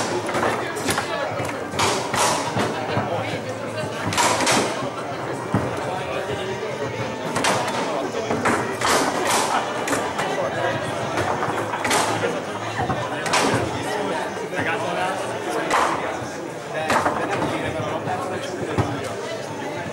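Foosball rods clatter and the ball knocks against the players.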